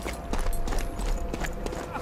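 Footsteps crunch softly over stone.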